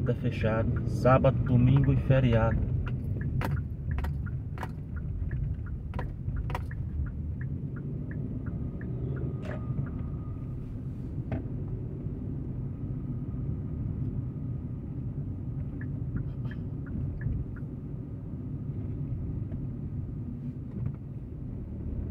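Tyres rumble low on the road.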